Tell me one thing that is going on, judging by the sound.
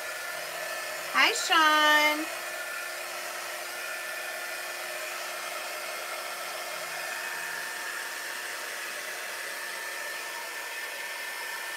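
A heat gun blows with a steady whir.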